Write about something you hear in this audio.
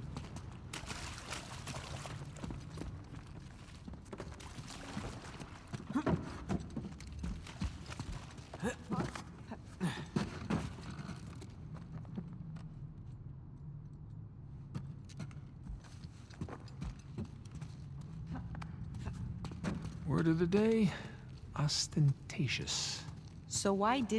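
Footsteps crunch on rubble and stone floors.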